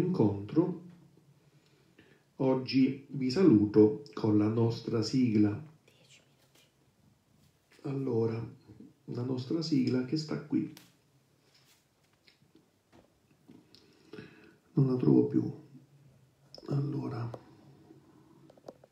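A double bass is plucked, playing phrases of deep notes with pauses between them.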